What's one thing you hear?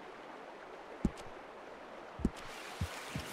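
A menu clicks sharply a few times.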